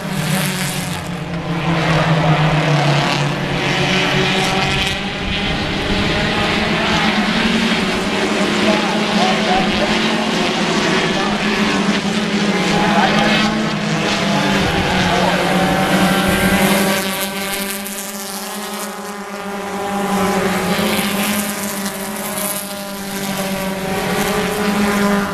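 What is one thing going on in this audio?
Race car engines roar loudly and rise and fall as the cars speed around a track.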